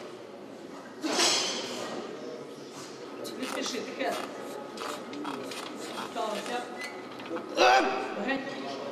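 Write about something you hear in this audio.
Several men shout loud encouragement in an echoing hall.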